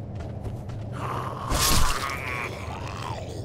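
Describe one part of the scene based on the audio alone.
A sword slashes and strikes a creature.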